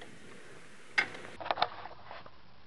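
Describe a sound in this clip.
A metal jack handle clanks.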